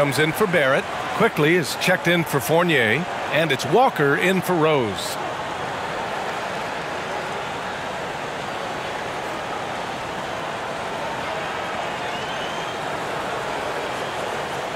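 A large crowd murmurs and cheers steadily in an echoing arena.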